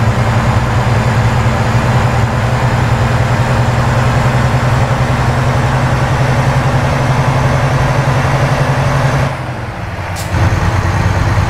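A truck engine drones steadily, dipping briefly as the gear changes.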